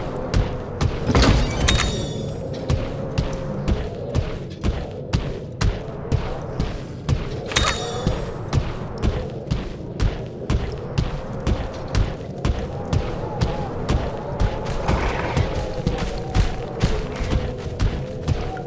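Heavy clawed footsteps thud quickly and steadily as a creature runs.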